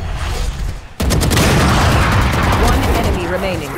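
An automatic rifle in a game fires in rapid bursts.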